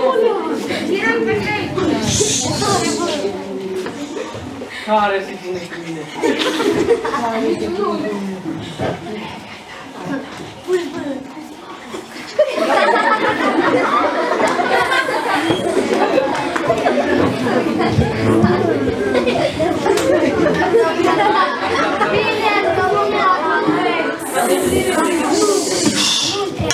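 Boys speak lines loudly and with animation.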